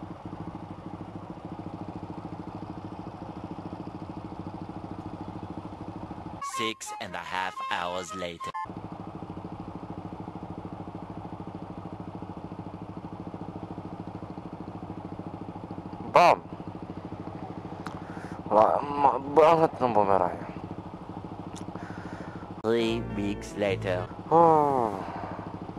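A motorcycle engine idles with a steady low hum.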